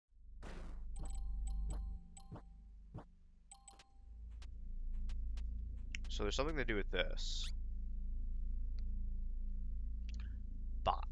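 Short electronic game sounds blip and chime.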